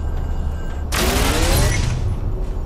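A bright rising chime rings out once.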